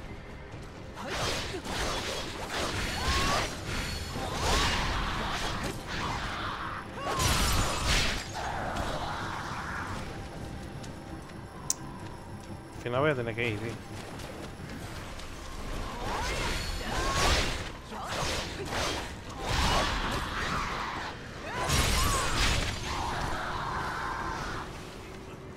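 Swords slash and clash in a fast fight.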